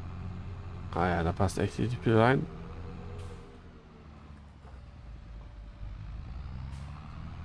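A tractor engine hums while driving.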